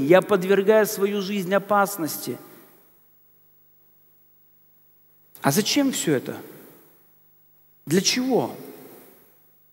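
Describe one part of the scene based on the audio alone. A middle-aged man speaks calmly through a headset microphone in a room with a slight echo.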